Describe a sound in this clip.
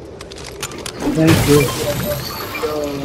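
Bright magical crackling bursts out as a shield is drunk.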